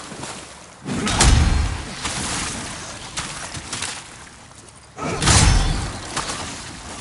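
A sword swings with a heavy whoosh and impact.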